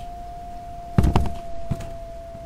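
A door slams shut loudly.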